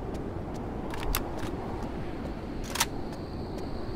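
A rifle magazine clicks and clacks as it is swapped.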